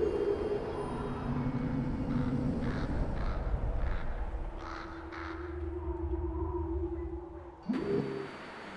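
Waves roll and wash over open sea.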